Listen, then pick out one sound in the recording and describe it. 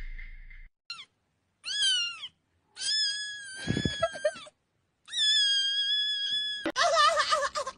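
A cat meows in loud, rising and falling cries.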